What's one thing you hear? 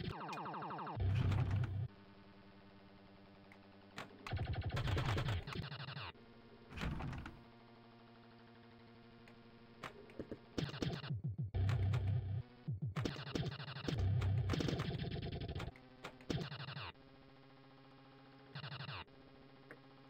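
Electronic pinball bumpers and targets ring out in loud, jingling bursts.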